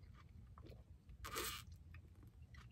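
A man drinks from a bottle.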